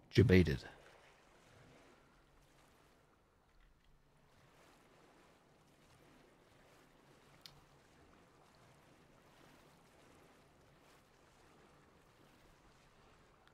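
Water laps and sloshes softly.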